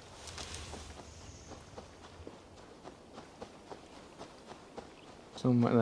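Footsteps brush through grass.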